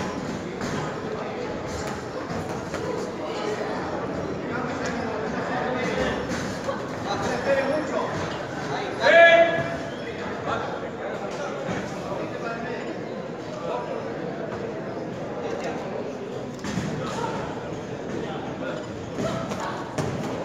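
A crowd murmurs and cheers throughout.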